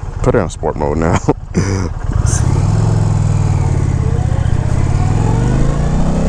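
A motorcycle engine rumbles steadily as the bike rides along a road.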